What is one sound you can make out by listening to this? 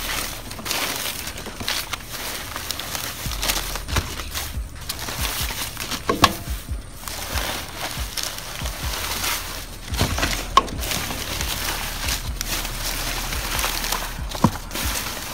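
Plastic bags and paper rustle and crinkle as a hand rummages through them.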